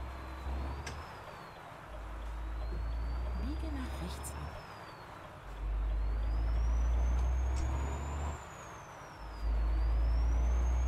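A truck engine drones low and steady, dipping briefly at each gear change.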